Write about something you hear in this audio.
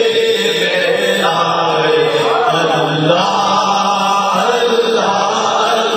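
A man chants into a microphone, heard through a loudspeaker.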